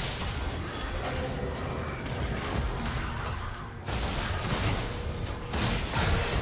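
Spell effects and weapon hits crackle and clash in a fast video game battle.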